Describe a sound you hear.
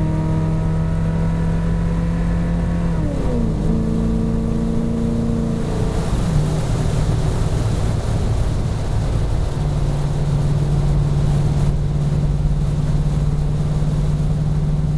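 A car engine hums steadily, its pitch dropping and rising at times.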